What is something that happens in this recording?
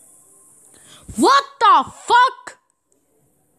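A young girl shrieks loudly, close by.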